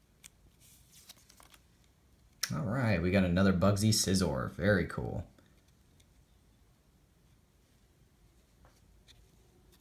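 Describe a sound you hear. Stiff trading cards rustle and slide against each other in hands.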